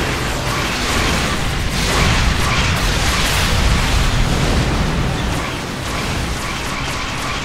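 Weapons fire and explosions rumble loudly.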